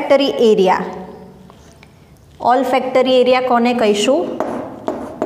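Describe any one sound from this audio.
A young woman reads aloud clearly, close by.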